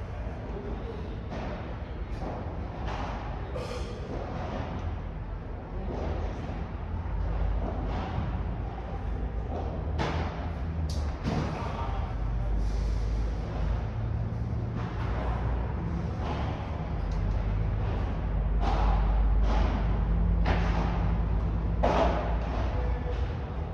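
Shoes squeak and scuff on the court.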